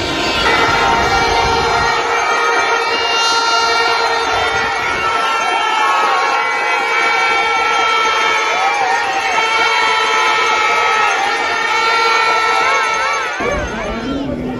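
A crowd of fans sings and chants loudly outdoors.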